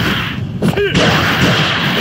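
An energy blast bursts with a loud whoosh.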